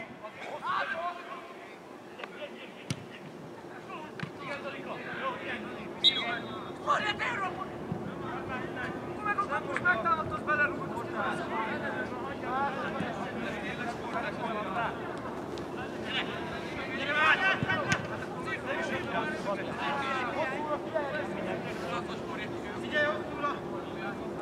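Young men shout and call to each other across an open outdoor field.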